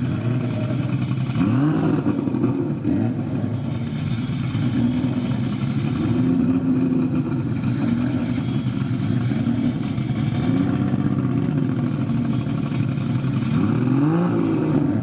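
A drag racing engine idles loudly with a deep, lumpy rumble and revs up now and then.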